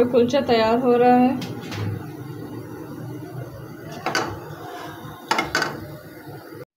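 Oil sizzles softly in a hot pan.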